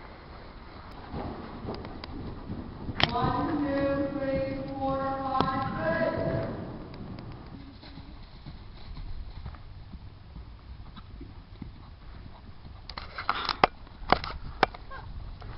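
A horse's hooves thud on soft ground at a canter.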